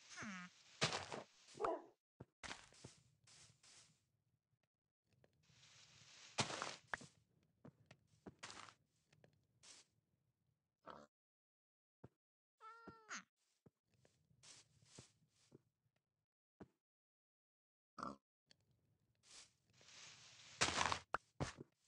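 Dirt blocks crunch as they are dug up.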